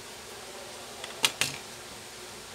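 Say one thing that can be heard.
A utility knife clicks and taps against a hard surface.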